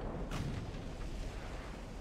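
A ship's heavy guns fire with a loud boom that rumbles away.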